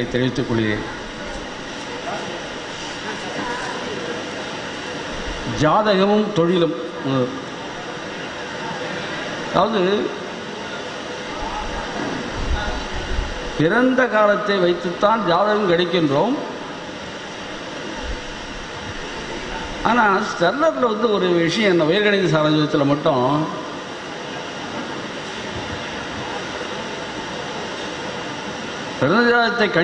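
An elderly man speaks slowly into a microphone, heard through loudspeakers with pauses between phrases.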